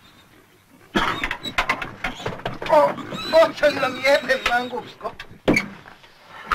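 An elderly man shouts angrily close by.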